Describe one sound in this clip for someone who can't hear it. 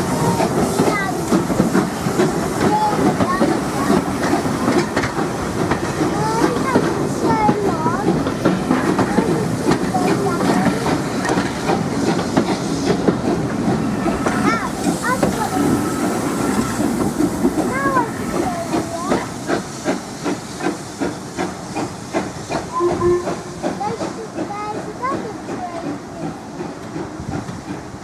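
Railway carriages rumble and clatter past close by.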